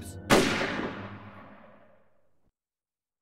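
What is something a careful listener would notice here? A gunshot rings out and echoes away.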